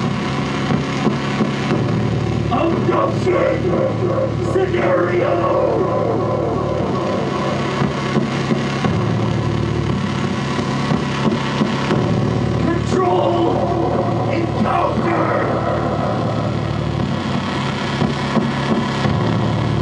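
Loud electronic music with a deep, steady bass plays over loudspeakers.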